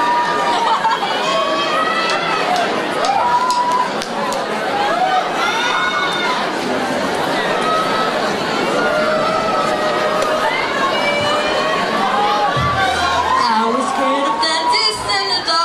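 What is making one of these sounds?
A ukulele strums along.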